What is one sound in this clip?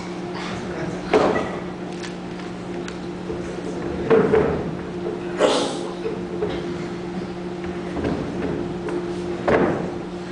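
Footsteps thud on a wooden stage.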